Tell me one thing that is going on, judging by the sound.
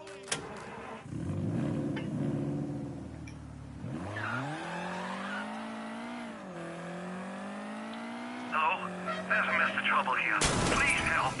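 A car engine hums and revs as a car drives off.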